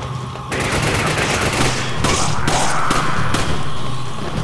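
Gunshots fire in quick bursts, echoing in a large hall.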